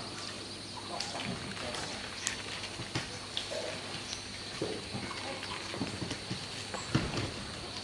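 Leaves and branches rustle as a monkey climbs through them.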